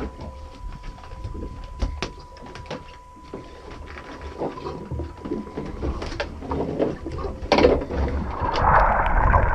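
Wind blows over open water outdoors.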